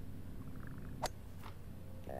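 A golf club strikes a ball with a short, sharp click.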